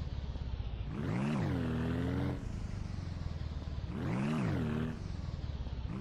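A small vehicle's engine revs up and down.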